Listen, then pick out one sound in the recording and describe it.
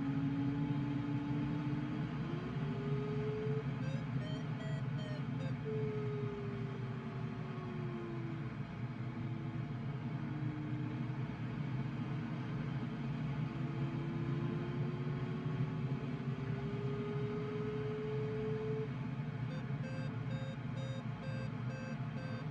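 Wind rushes steadily past a glider's canopy.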